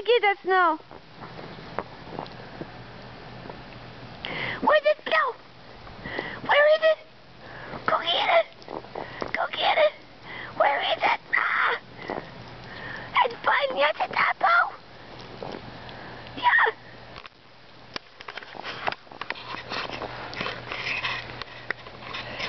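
A dog's paws crunch through snow.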